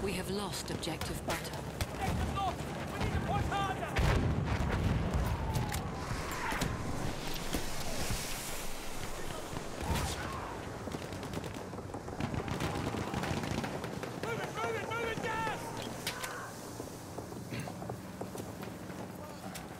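Gunfire cracks and rattles in rapid bursts.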